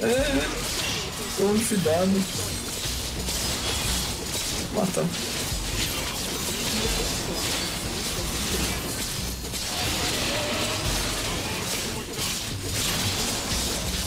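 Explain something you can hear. Blows clash and thud in quick bursts.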